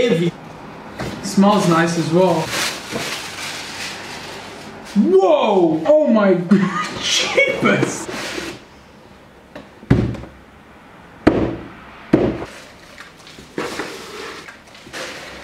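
Paper rustles and crinkles as tissue is pulled from a cardboard box.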